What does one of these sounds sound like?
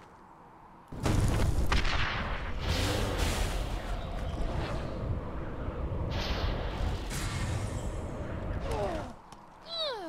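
A snowstorm's wind roars loudly.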